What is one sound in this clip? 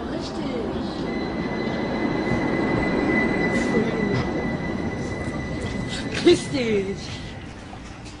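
A tram rumbles past.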